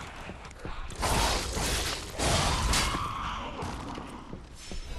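Flames burst and roar with a whoosh.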